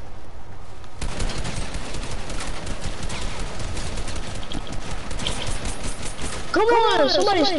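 Rapid gunshots crack in quick bursts.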